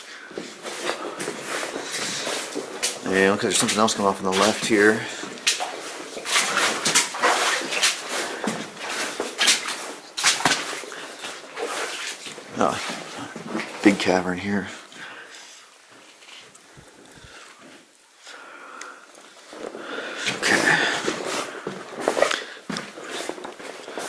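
Footsteps crunch over loose rock and gravel, echoing in a narrow tunnel.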